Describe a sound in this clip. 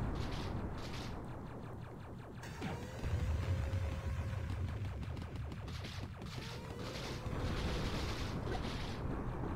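Game gunfire rattles rapidly.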